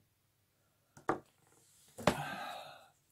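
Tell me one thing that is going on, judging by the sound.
A tool knocks down on a table.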